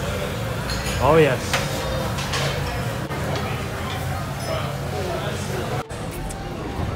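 Meat sizzles on a charcoal grill.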